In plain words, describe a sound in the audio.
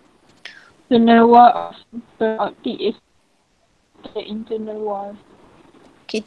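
A young woman speaks softly over an online call.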